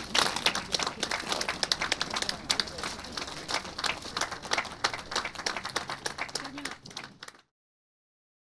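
A group of people applaud outdoors.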